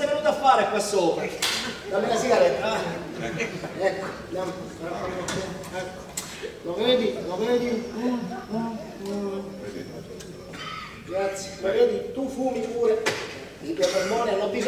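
An elderly man speaks in reply.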